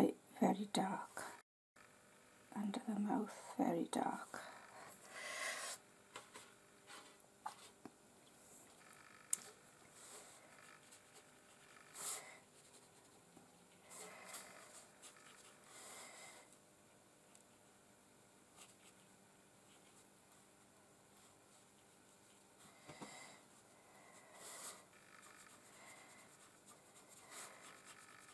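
A brush softly scratches and dabs on paper.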